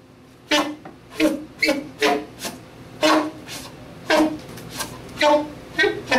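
A saxophone plays short, sharp bursts of notes in a room with some echo.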